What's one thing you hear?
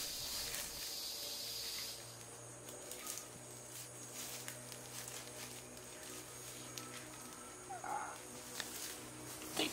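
Bare feet shuffle and crunch on dry leaves.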